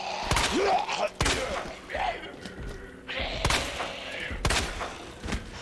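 A pistol fires several sharp shots in a row.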